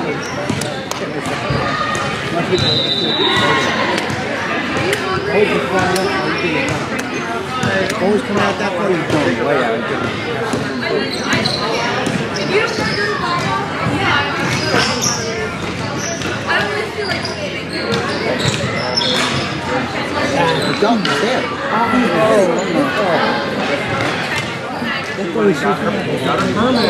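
Sticks clack and tap against a ball on a hard floor.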